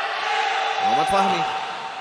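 A footballer kicks a ball with a sharp thud.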